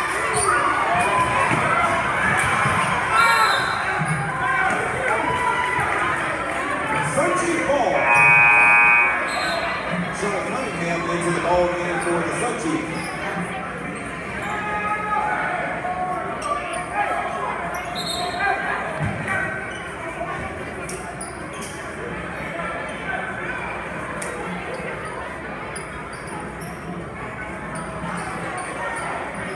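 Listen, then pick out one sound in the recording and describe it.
A crowd chatters and cheers in a large echoing gym.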